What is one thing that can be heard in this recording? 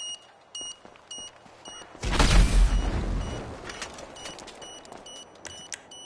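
Footsteps run on a dirt road.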